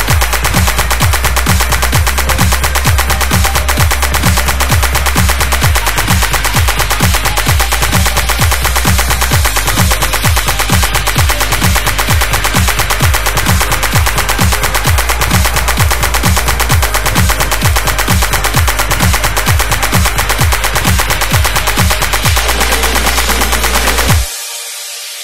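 Fast electronic dance music plays with a steady, pounding beat.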